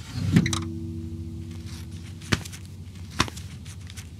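Paper banknotes rustle as hands lift a bundle from a drawer.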